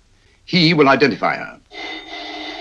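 A man speaks calmly and closely.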